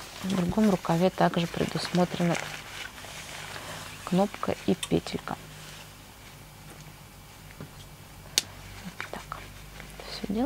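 Jacket fabric rustles softly under handling.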